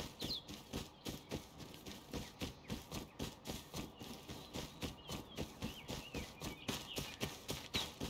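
Footsteps crunch steadily over dirt and snow.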